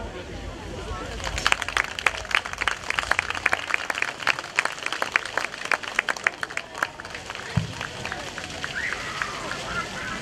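A brass band plays a tune outdoors.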